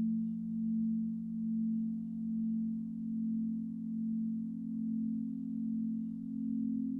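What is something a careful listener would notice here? A crystal singing bowl hums with a deep, steady, gently pulsing tone.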